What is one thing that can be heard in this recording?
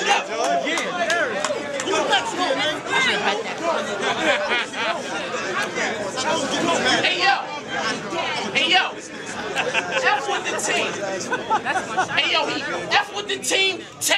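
A crowd of men shouts and cheers in the background.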